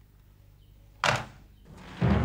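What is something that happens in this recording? A telephone handset is put down with a clack.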